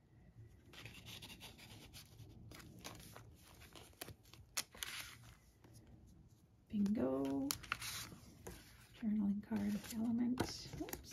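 Paper pages rustle and crinkle as they are handled up close.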